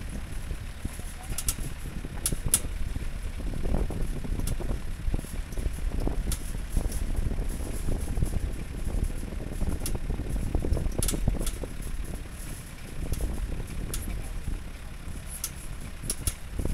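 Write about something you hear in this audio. Wind buffets past an open vehicle.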